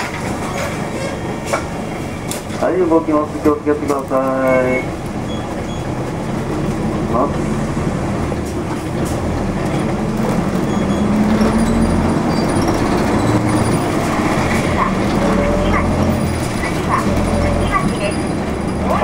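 A vehicle's engine hums steadily as it drives along a street.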